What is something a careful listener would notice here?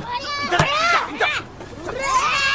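A child cries out loudly in pain.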